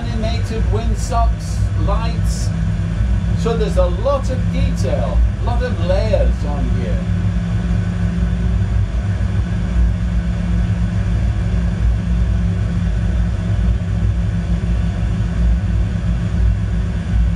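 A jet engine hums with a steady low drone.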